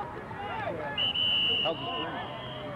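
A whistle blows briefly.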